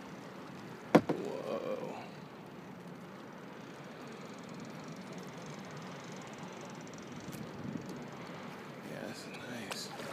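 Water laps gently outdoors.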